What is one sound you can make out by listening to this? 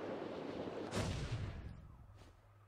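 A heavy landing thuds on the ground.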